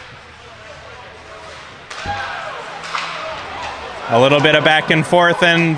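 Skates scrape across ice in a large echoing rink.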